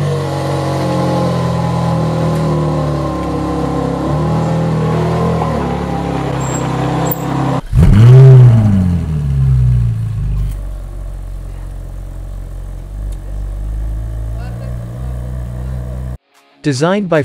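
A sports car engine idles with a deep, burbling rumble.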